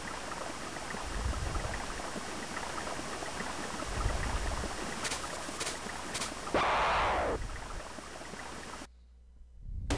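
Retro video game music plays.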